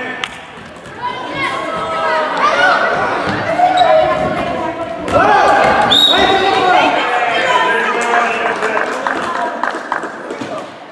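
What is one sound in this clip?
Children shout and cheer in a large echoing hall.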